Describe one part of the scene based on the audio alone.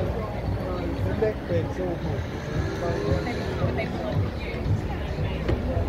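Voices of passers-by murmur on a busy street.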